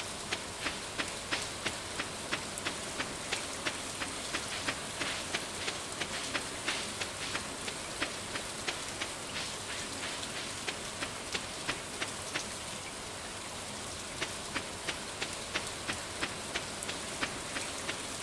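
Quick, light footsteps tap steadily along a dirt path.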